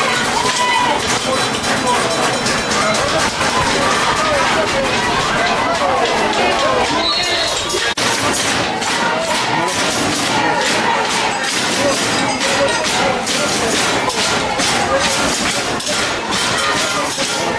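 A crowd of spectators shouts and cheers at a distance.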